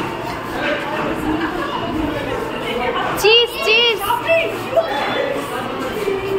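A crowd of children chatters excitedly close by.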